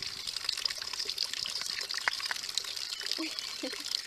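Water trickles and splashes into a cup.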